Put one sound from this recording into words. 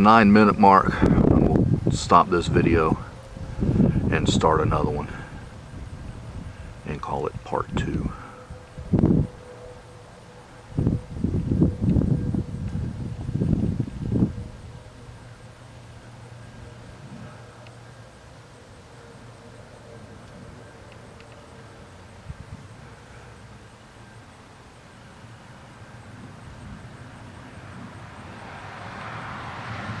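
A tractor engine rumbles steadily in the distance.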